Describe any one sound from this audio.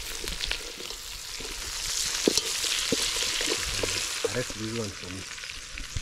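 A wooden spoon knocks against a metal pot.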